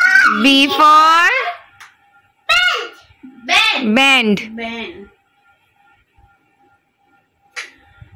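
A young girl speaks with animation close by, in a high voice.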